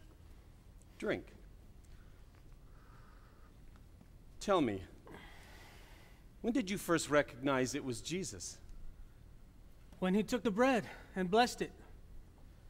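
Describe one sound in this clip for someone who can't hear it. A man speaks theatrically, heard from a distance in a large room.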